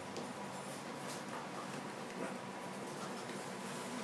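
A wire carrier door rattles and clicks as a hand moves it.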